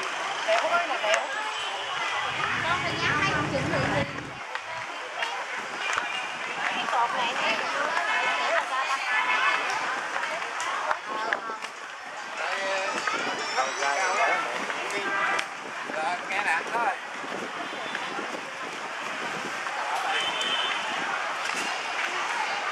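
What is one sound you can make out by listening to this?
A crowd of men, women and children chatter nearby outdoors.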